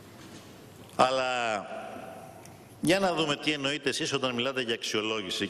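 A man speaks forcefully into a microphone in a large hall.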